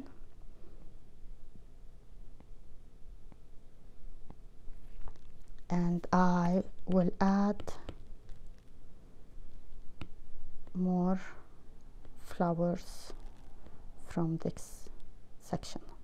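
A stylus taps and scrapes softly on a glass tablet.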